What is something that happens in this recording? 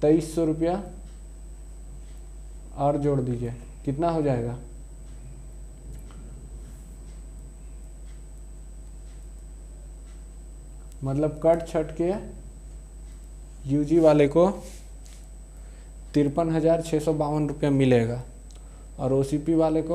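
A young man speaks calmly and clearly, close by, in short bursts with pauses.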